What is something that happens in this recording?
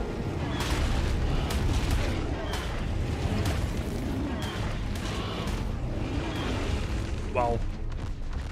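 A large beast bites and crunches with heavy thuds in quick succession.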